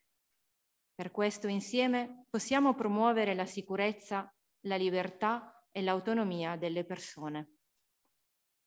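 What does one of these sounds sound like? A woman speaks clearly into a microphone, reading out.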